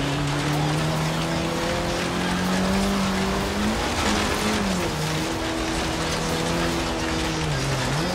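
A car engine roars at high revs, rising in pitch and dropping briefly as gears shift.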